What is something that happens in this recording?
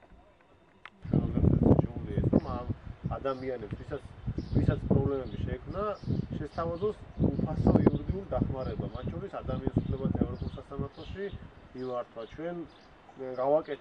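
A young man speaks calmly close by, outdoors.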